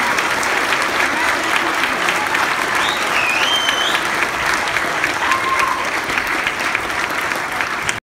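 An audience claps and applauds loudly in a hall.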